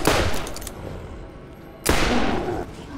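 A gunshot bangs loudly.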